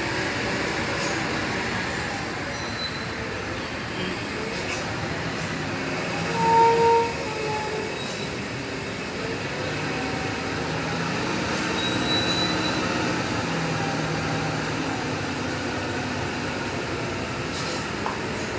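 A diesel semi-truck pulling a long trailer creeps slowly closer with its engine rumbling.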